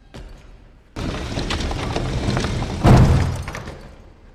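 A heavy wooden shelf scrapes loudly as it is pushed across the floor.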